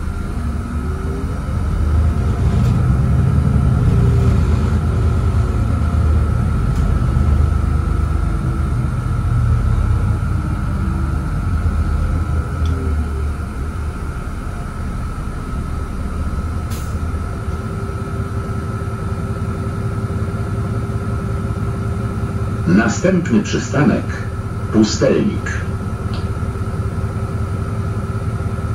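The diesel engine of a city bus drones, heard from inside the bus as it drives.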